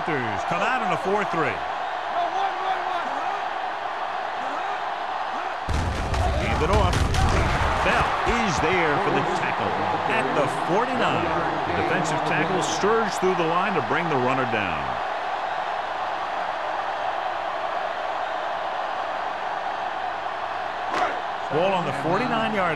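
A stadium crowd roars and murmurs throughout.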